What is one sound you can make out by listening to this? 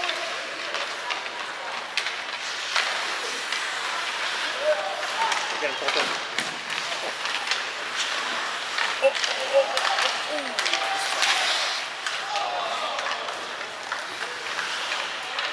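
Skates scrape and hiss across ice in a large echoing arena.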